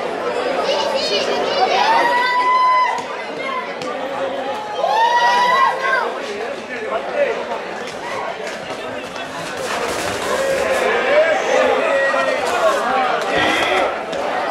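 A crowd shouts and whistles as a bull runs past.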